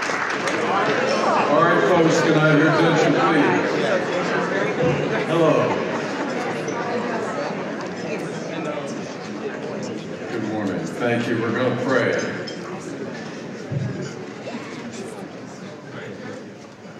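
Many people chatter in the background.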